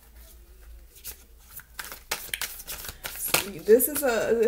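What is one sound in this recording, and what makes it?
A deck of cards is shuffled with quick, dry flicks.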